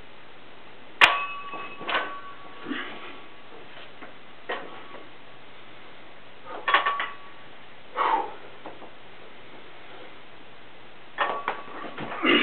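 Metal weight plates clank and ring on a barbell.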